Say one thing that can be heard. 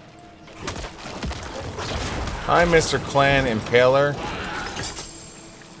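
Game combat effects clash and thud.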